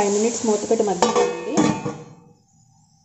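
A metal lid clatters onto a metal bowl.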